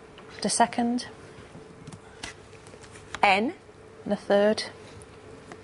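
A woman speaks clearly in short bursts.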